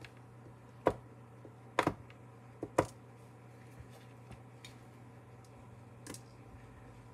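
Small tools tap and click on a hard surface.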